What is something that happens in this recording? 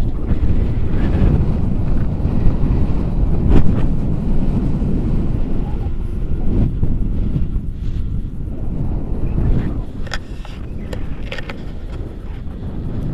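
Wind roars loudly across the microphone outdoors.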